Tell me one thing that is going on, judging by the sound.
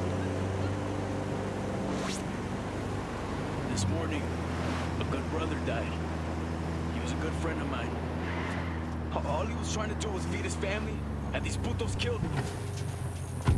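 A van engine hums steadily as it drives along a road.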